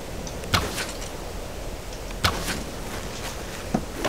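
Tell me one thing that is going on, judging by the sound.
A bowstring creaks as it is drawn.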